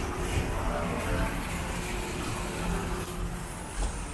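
A small fountain splashes nearby.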